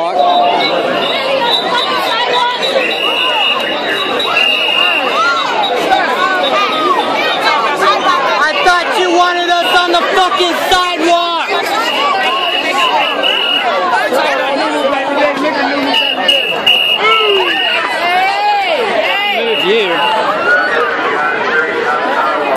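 A large crowd of men and women talks and shouts all around, close by, outdoors.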